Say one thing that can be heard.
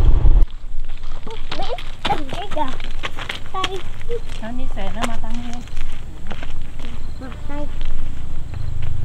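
Children chatter and call out outdoors.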